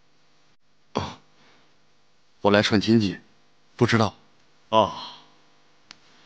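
A man with glasses answers calmly, close by.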